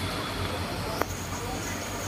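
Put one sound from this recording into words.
A ladle clinks against a metal pot.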